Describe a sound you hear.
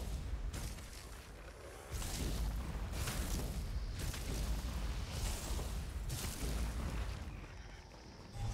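Magic blasts whoosh and crackle in rapid bursts.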